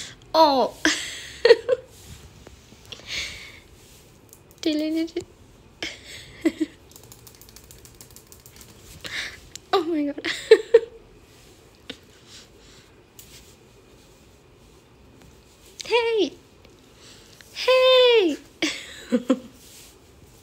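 A kitten meows loudly and repeatedly, close by.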